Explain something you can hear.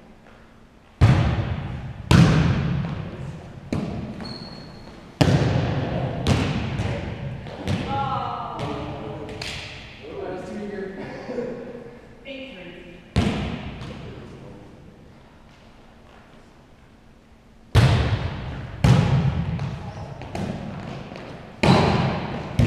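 A volleyball is struck with sharp smacks that echo around a large hall.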